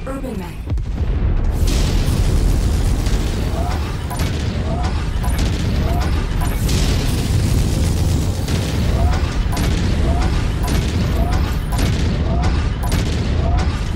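Guns fire in rapid bursts with loud explosions.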